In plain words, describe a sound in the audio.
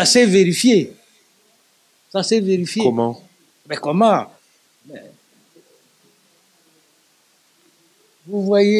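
An elderly man speaks calmly and with pauses into a close microphone.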